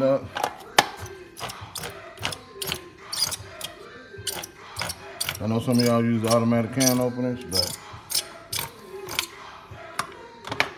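A can opener clicks and grinds around a can.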